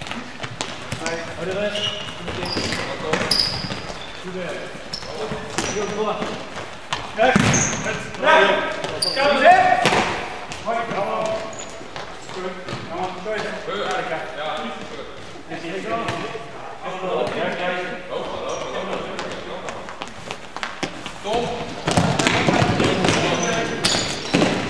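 Young men shout and call out to each other.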